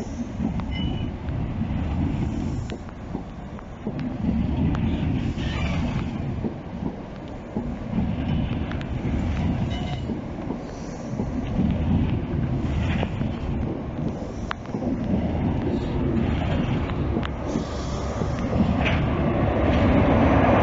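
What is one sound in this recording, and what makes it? A passenger train rushes past close by with a deep rumble.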